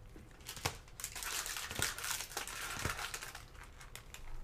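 Plastic rustles as it is shuffled between hands.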